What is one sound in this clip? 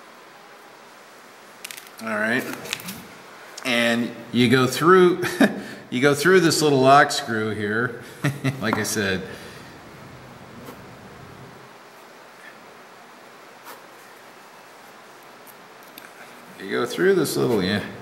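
Small metal parts click and tap together as they are handled.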